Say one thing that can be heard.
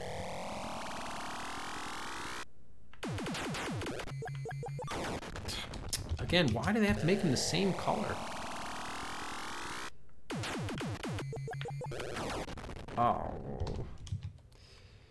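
Electronic arcade game sounds buzz and beep.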